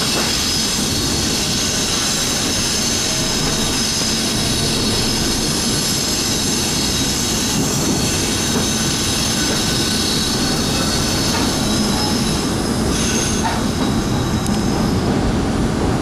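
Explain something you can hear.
Train wheels whine and squeal on the rails.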